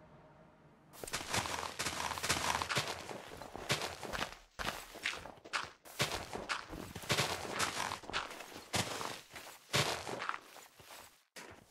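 Dirt crunches in quick, repeated bursts as a shovel digs.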